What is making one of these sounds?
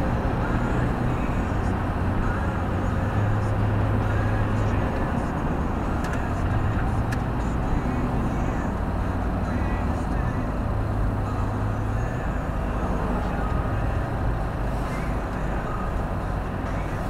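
A car engine drones steadily, heard from inside the car.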